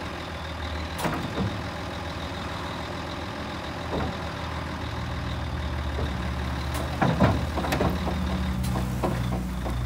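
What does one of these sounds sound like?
Metal clanks and creaks from the tipping trailer bed.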